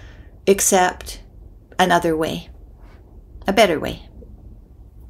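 A middle-aged woman speaks calmly in short phrases over an online call.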